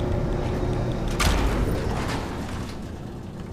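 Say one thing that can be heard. A lift rumbles and clanks as it moves up a shaft.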